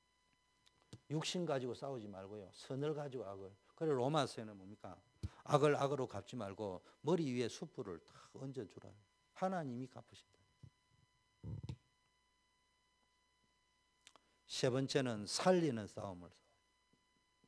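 A middle-aged man speaks with animation into a handheld microphone, in short bursts with pauses.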